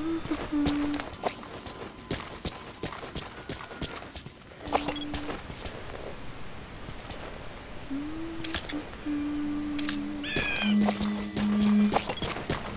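Footsteps run quickly over rough ground.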